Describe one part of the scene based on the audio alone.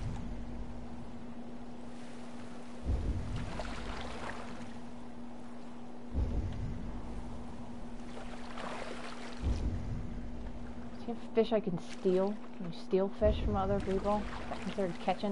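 Waves lap and wash around a small boat.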